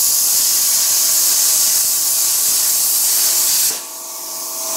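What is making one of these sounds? A plasma cutter hisses loudly as it cuts through metal.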